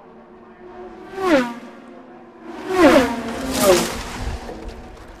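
Race cars roar past at high speed, their engine pitch dropping as they go.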